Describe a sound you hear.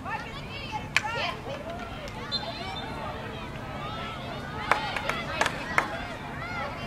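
Hockey sticks crack sharply against a ball.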